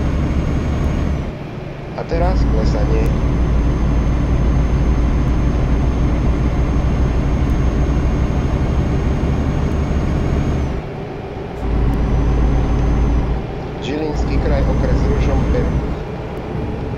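A truck engine drones steadily with a deep hum, dipping briefly now and then.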